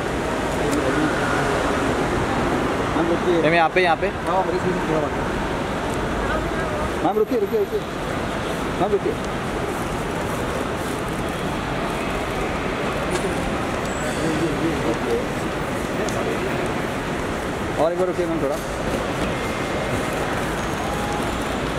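A suitcase rolls over a hard floor.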